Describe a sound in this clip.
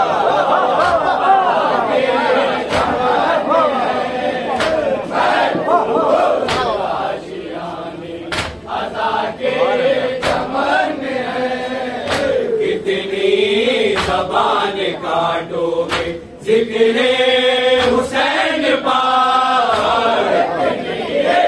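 A man chants loudly through a microphone in a large crowd.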